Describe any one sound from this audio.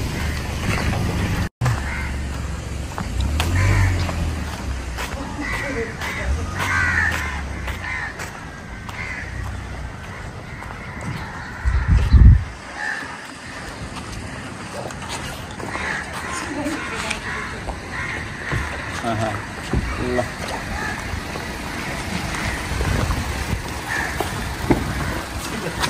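Shoes tap on pavement as a man walks.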